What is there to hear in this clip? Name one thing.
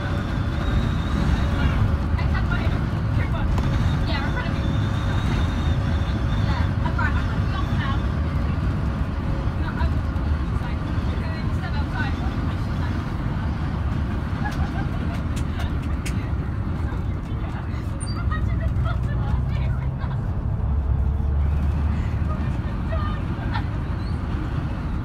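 Loose fittings rattle and squeak inside the moving bus.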